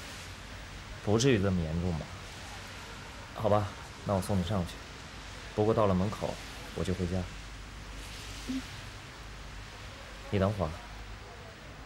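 A young man speaks calmly and kindly, close by.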